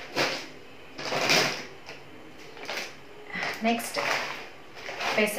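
A plastic packet crinkles in hands.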